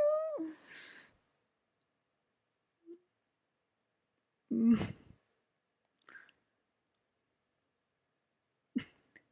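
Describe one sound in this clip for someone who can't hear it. A woman speaks softly in short bursts, close by.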